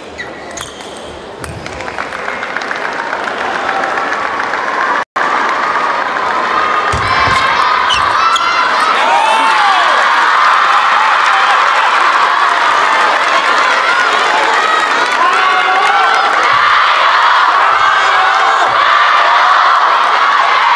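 A large crowd cheers and claps in an echoing hall.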